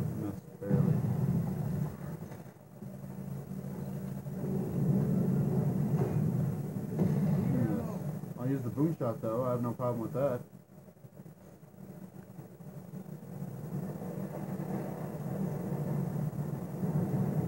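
Heavy boots clank on a metal walkway.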